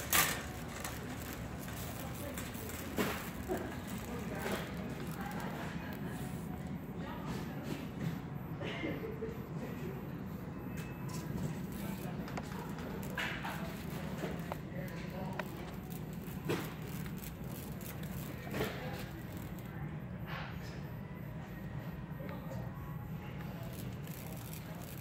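Shopping cart wheels rumble and rattle across a hard floor.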